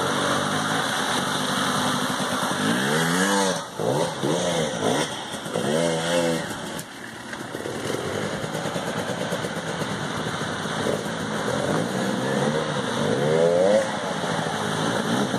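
Water splashes as a motorbike rides through a muddy puddle.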